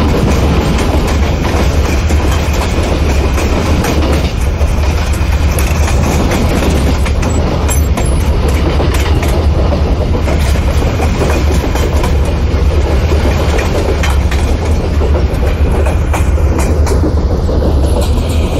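Train wheels click over rail joints.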